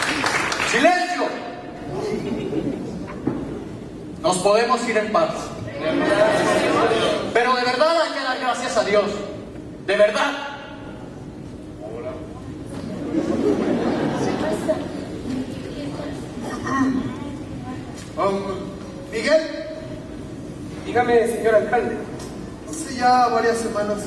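A man sings loudly in a large hall.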